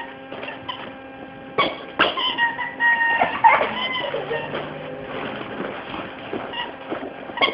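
A small dog chews and pushes a toy along the floor.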